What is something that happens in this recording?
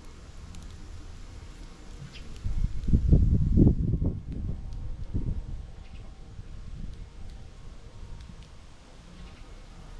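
Small birds chirp faintly outdoors.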